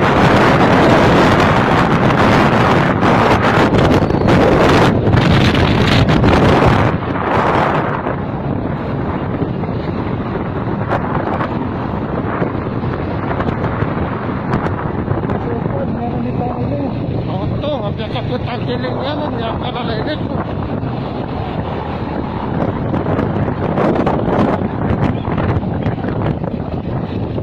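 Wind rushes loudly over a moving motorcycle.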